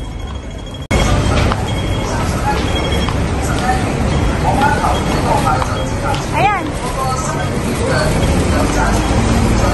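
Busy street noise hums steadily outdoors.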